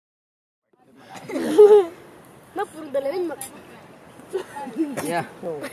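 Young boys talk and laugh with animation close by, outdoors.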